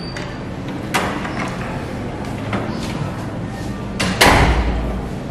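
A door opens and bangs shut.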